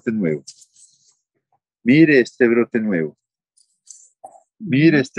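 A middle-aged man speaks calmly and close by, in short phrases.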